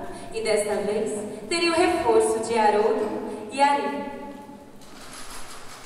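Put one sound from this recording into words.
A young woman speaks with animation through a headset microphone, heard over a loudspeaker in a hall.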